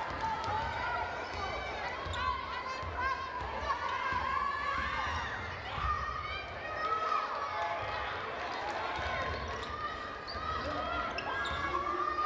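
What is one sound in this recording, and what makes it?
A basketball thuds as it is dribbled on the court.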